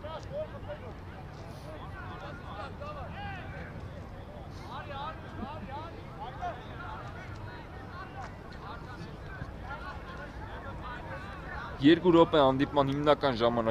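Men shout to each other in the distance, outdoors.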